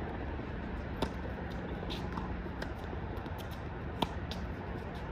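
A tennis racket strikes a ball with sharp pops.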